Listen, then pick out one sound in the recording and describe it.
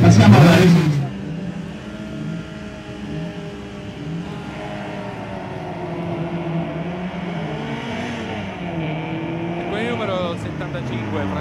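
A racing car engine idles, then roars as the car pulls away.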